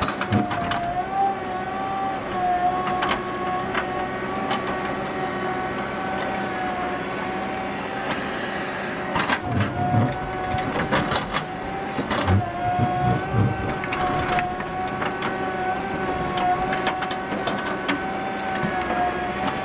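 A diesel engine hums steadily close by.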